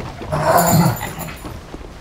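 Hands and feet knock on a wooden ladder.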